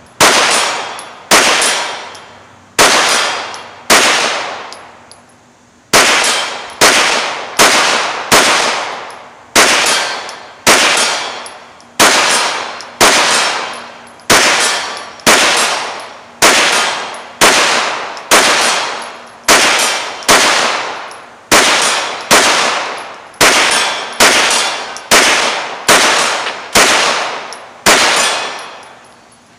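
A rifle fires single shots one after another outdoors, each crack ringing out and fading.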